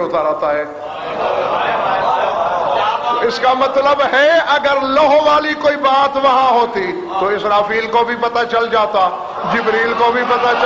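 A man recites with passion in a singing voice through a microphone, echoing in a large hall.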